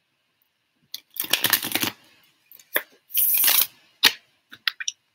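Paper crinkles and rustles in a young woman's hands.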